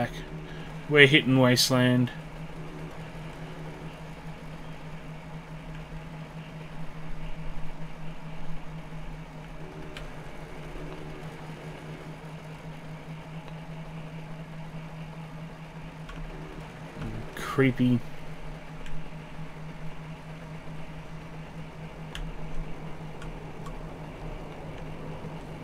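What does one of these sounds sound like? A small motorbike engine hums steadily as it rides along.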